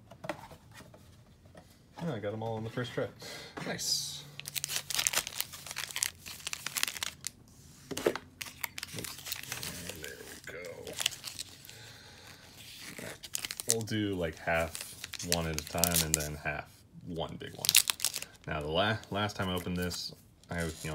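Foil card packs crinkle and rustle as they are handled.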